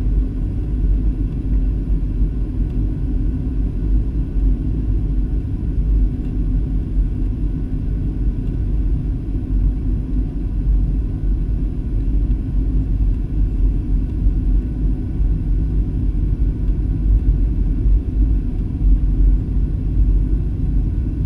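A jet engine roars steadily in a low, constant drone inside an aircraft cabin.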